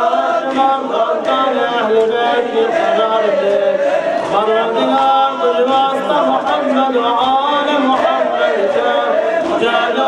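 A young man chants a prayer into a microphone, heard through a loudspeaker.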